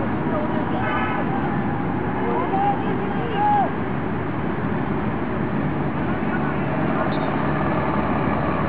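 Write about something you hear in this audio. A steady outdoor hubbub of distant voices fills the air.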